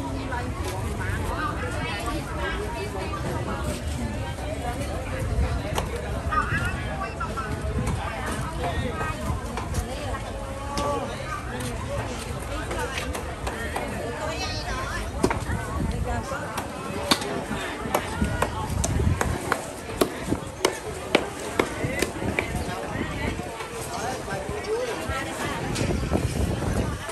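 A busy outdoor market murmurs with many voices of vendors and shoppers nearby.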